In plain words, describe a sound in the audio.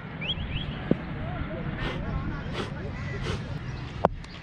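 A cricket bat taps on the hard ground.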